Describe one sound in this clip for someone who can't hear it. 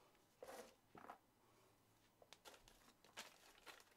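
Plastic packaging rustles and crinkles.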